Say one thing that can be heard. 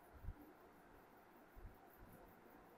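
A hand lightly taps and slides over cards.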